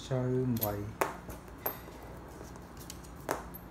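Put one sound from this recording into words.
Small metal screws clink as they are set down on paper.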